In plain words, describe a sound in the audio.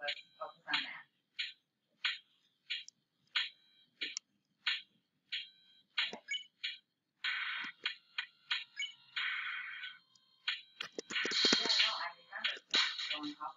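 Short electronic blips from a video game sound in quick succession.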